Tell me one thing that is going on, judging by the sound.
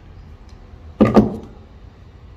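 Metal parts clank together sharply close by.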